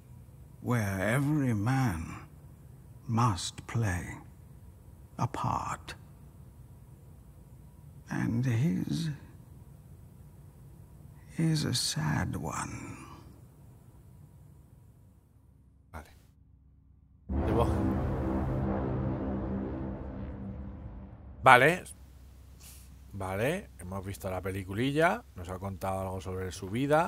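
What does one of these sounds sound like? A man talks animatedly into a close microphone.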